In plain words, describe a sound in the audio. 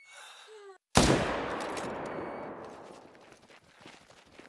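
A rifle shot cracks loudly and echoes away.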